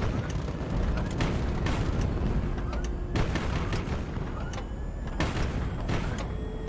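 A low engine rumbles steadily.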